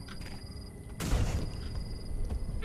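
A fiery blast bursts with a loud boom.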